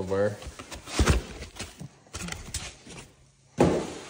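Foam packing squeaks and rubs as it is lifted out.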